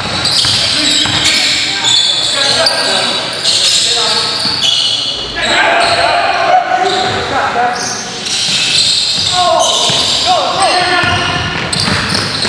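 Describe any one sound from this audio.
A basketball bounces on the floor as it is dribbled.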